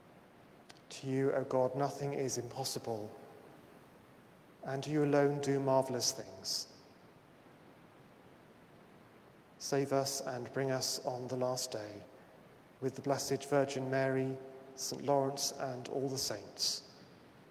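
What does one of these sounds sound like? A man chants in a steady singing voice in a large echoing hall.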